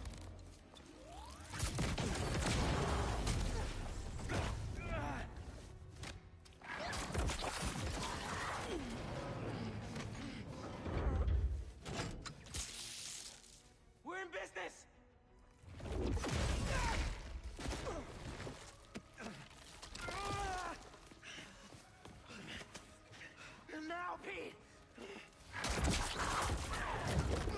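An energy weapon fires with a crackling zap.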